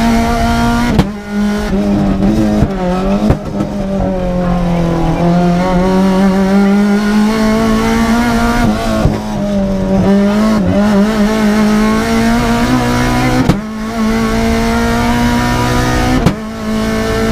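Gearshifts crack sharply as the car accelerates.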